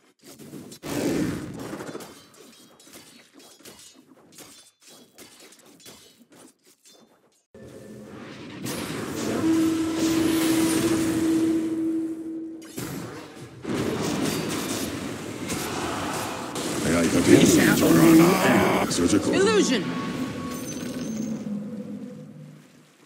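Game spell effects whoosh and burst during a battle.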